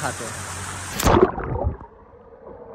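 Water splashes as a man plunges in.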